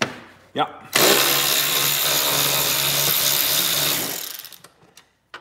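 A cordless screwdriver whirs steadily, then stops.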